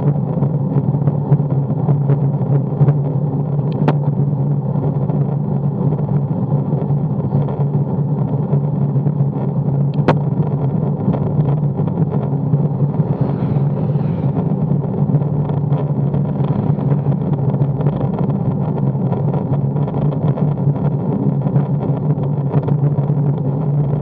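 Wind roars steadily across the microphone while riding fast outdoors.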